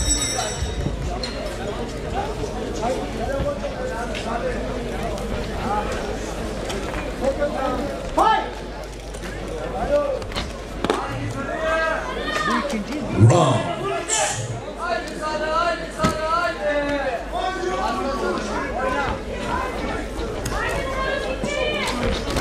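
A crowd shouts and cheers in a large hall.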